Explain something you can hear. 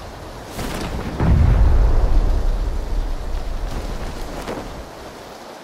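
Wind rushes past a parachute as it glides down.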